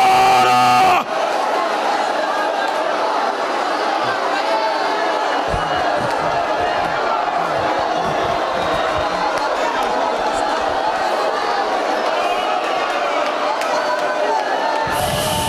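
A crowd of men and women pray aloud all at once in a large echoing hall.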